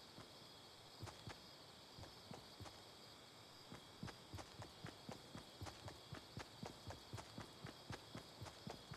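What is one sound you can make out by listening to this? Footsteps thud quickly on grass as a game character runs.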